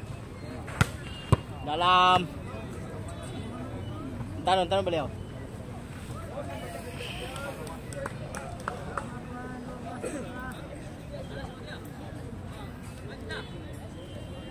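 A crowd of young people chatters in the background.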